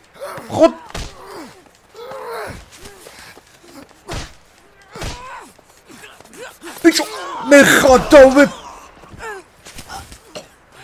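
Heavy punches thud in a fistfight.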